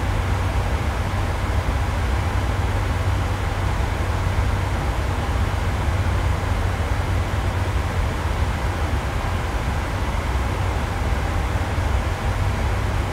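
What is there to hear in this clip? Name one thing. Jet engines hum with a steady, low roar.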